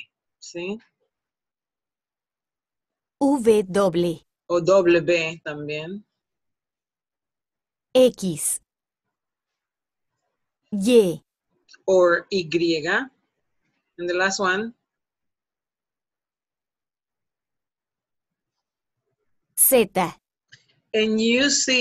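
A woman speaks calmly and clearly over an online call, pausing between phrases.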